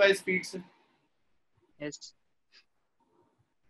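A young man speaks calmly into a microphone, in short bursts.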